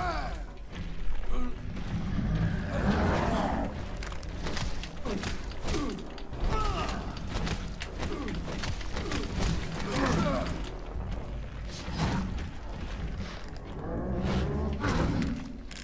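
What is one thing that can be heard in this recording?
A monster snarls and groans.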